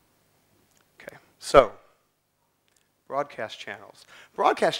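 A man speaks through a microphone, pausing between phrases.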